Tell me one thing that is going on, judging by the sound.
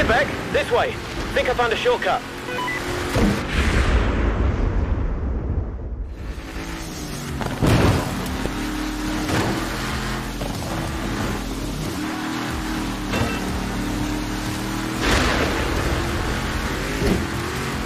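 A truck engine roars steadily.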